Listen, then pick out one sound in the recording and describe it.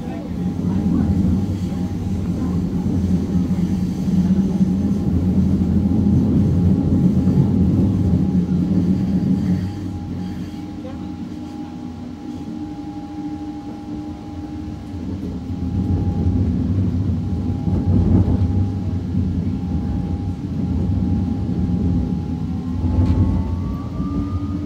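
A train rumbles steadily along the rails, heard from inside a carriage.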